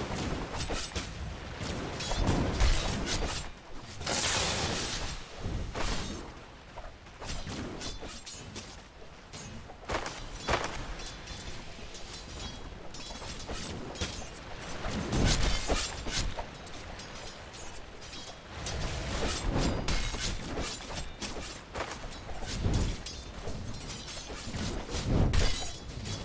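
Magic spells crackle and whoosh in a fierce fight.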